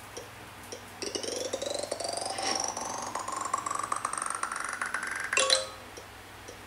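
A game plays a rising run of tones that ends in a burst.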